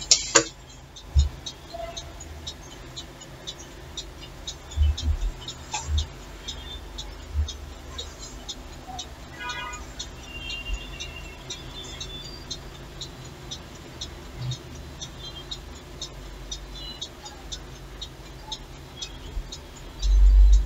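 A clock ticks steadily nearby.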